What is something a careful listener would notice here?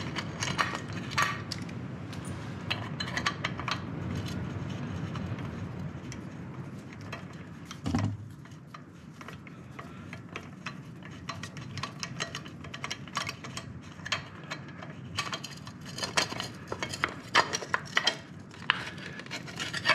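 A metal socket wrench clicks and rattles against an engine part.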